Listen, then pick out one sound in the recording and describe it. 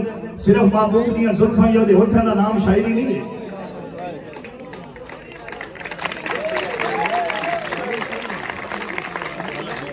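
A man sings loudly into a microphone over a loudspeaker, outdoors.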